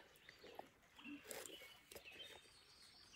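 A man slurps from a spoon.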